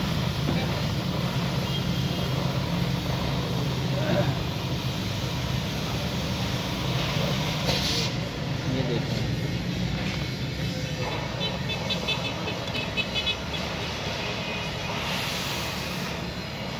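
A cutting torch hisses and roars steadily as it burns through steel.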